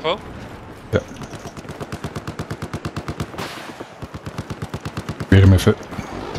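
Rapid automatic gunfire rattles in short bursts.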